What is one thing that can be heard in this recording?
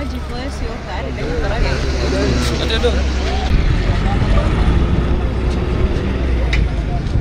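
A crowd of men talks over one another outdoors.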